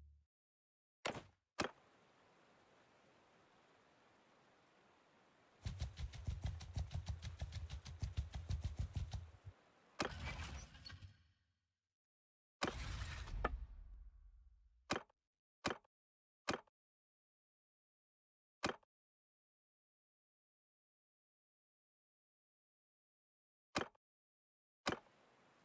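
Short menu clicks sound now and then.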